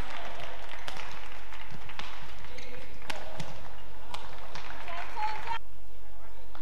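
A crowd cheers and murmurs in a large hall.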